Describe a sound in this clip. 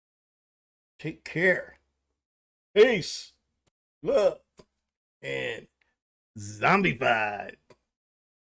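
An older man talks with animation into a close microphone, in short bursts.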